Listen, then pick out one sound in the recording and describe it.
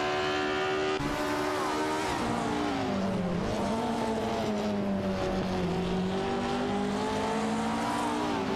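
A racing car engine drops in pitch while braking into a corner, then climbs again.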